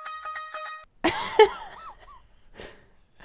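A young man laughs loudly and close by.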